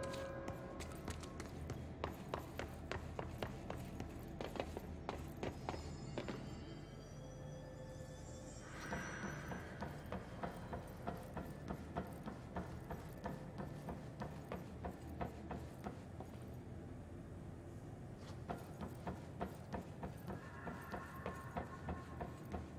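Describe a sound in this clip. Footsteps thud quickly on hard floors and metal walkways.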